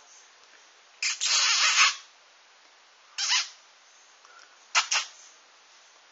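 A puppy yaps sharply a few times, close by.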